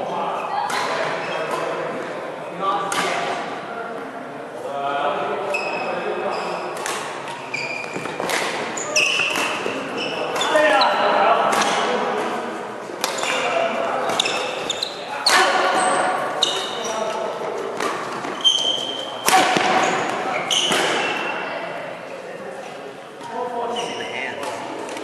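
Rackets strike a shuttlecock with sharp pops, back and forth.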